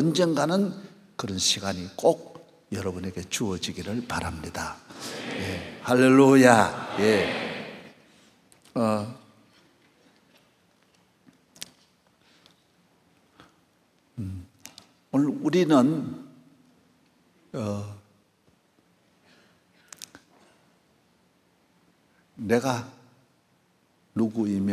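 An elderly man speaks calmly into a microphone in a large echoing hall, with long pauses.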